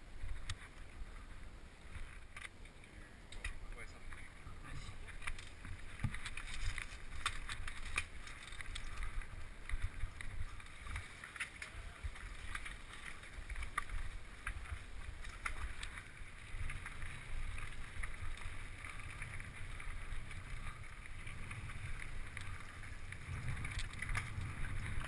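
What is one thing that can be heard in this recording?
A bicycle rattles and clanks over bumpy ground.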